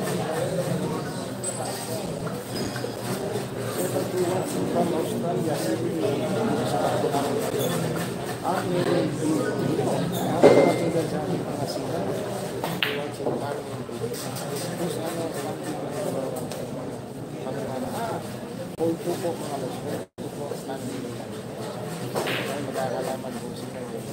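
A crowd of spectators chatters nearby throughout.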